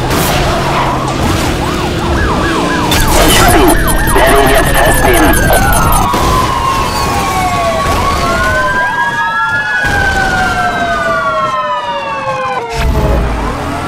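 Police sirens wail and sweep up and down in pitch.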